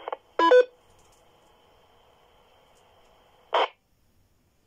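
A handheld radio hisses softly with a faint steady tone.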